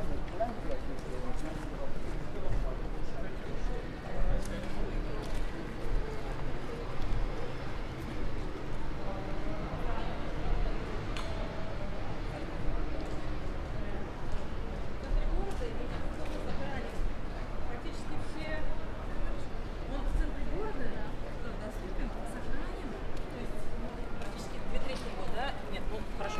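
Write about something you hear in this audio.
Footsteps tap on stone paving nearby.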